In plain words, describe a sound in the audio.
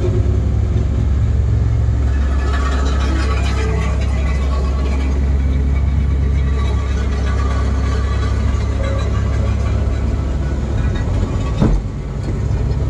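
A diesel engine hums steadily, heard from inside a machine's cab.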